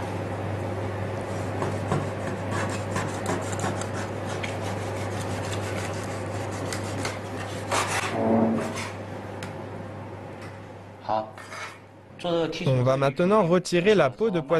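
A cleaver knocks against a wooden board while cutting fish.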